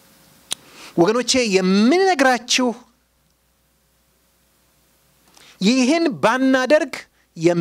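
A middle-aged man preaches with animation into a microphone, in bursts with pauses.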